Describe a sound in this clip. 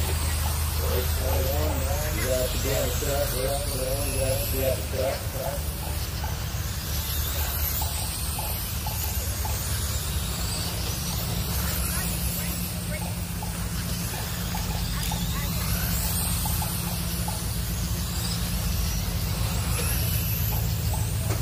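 Radio-controlled cars race around a dirt track.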